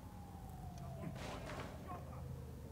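A wooden door creaks and swings open.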